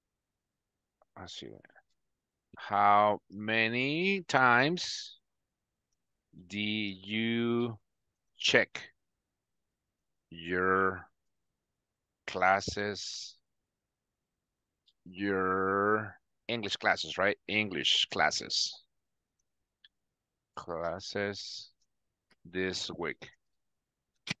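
A man speaks calmly and slowly over an online call.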